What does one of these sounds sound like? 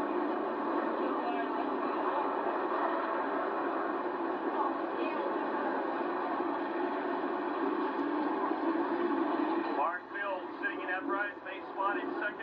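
Several race car engines roar loudly, heard from a distance outdoors.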